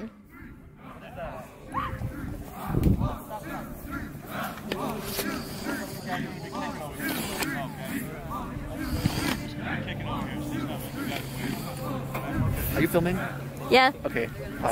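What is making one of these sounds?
A crowd murmurs and chatters in the distance.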